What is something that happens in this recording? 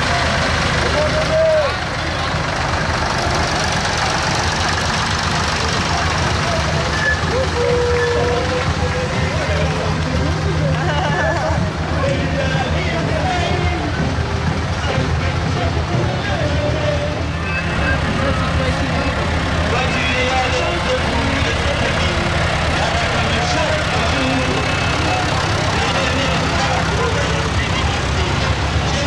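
Tractor engines rumble steadily as they drive slowly past.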